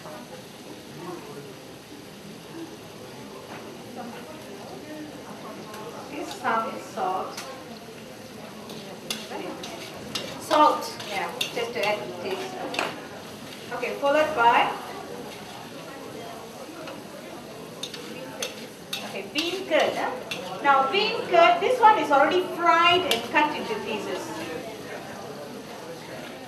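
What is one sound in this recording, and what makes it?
A metal spatula scrapes and clinks against a wok.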